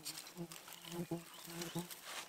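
Sticks knock against a wooden frame.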